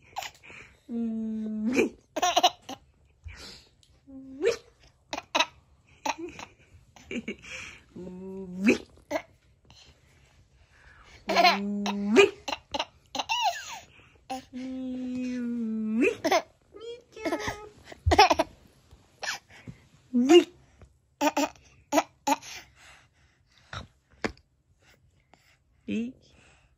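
A baby babbles and coos close by.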